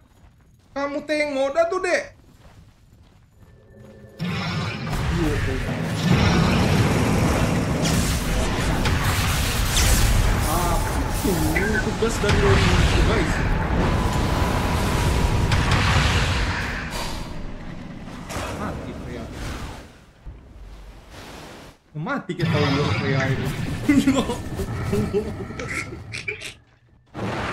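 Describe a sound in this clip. A young man talks through a microphone with animation.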